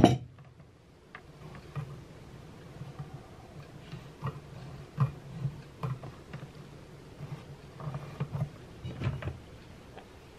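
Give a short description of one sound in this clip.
Metal clamp parts click and clink as hands adjust them.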